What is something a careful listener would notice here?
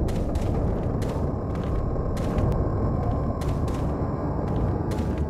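Footsteps crunch on dirt at a steady walking pace.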